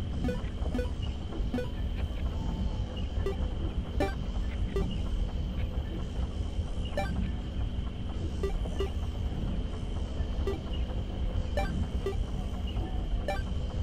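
Short electronic menu blips sound now and then.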